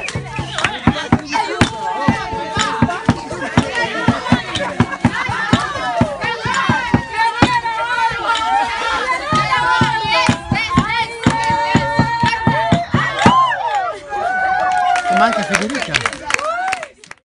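A group of women and men sing together outdoors.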